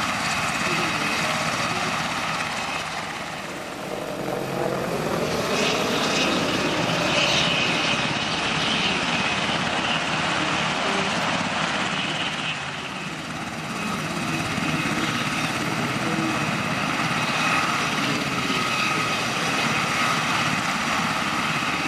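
A helicopter's rotor whirs loudly nearby.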